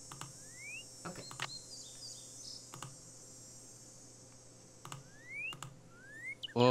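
A bird chirps in short rising whistles.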